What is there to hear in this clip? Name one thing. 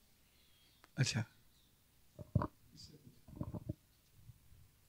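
A man speaks briefly and calmly into a microphone.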